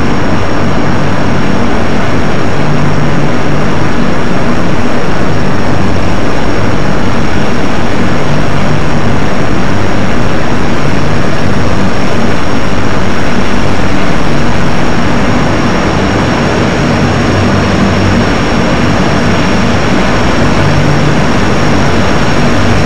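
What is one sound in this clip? Propeller engines of large aircraft drone loudly and steadily.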